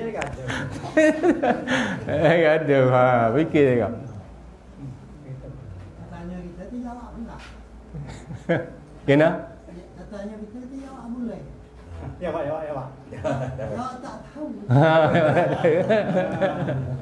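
A middle-aged man preaches with animation through a microphone and loudspeakers.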